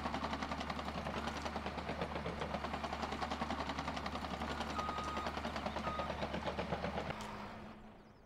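A heavy diesel engine rumbles steadily up close.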